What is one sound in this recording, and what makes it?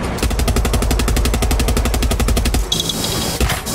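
A machine gun fires in a rapid burst.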